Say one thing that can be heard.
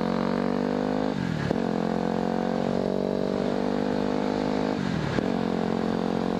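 A single-cylinder dual-sport motorcycle accelerates, shifting up through the gears.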